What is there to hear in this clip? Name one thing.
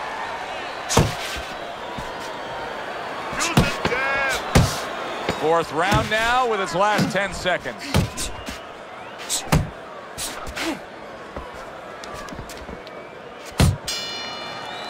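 Punches thud against a boxer's body.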